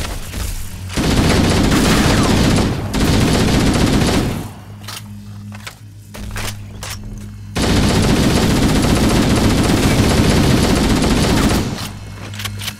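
An automatic rifle fires loud rapid bursts.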